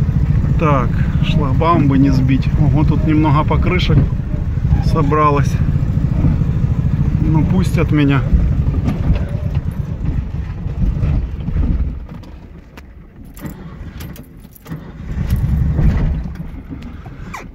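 A car engine rumbles as the car drives slowly along a bumpy road.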